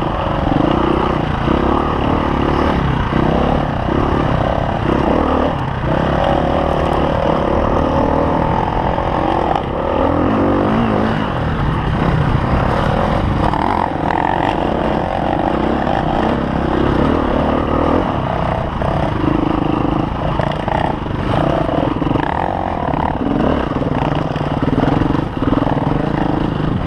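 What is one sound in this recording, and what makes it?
A dirt bike engine close by revs and drones loudly.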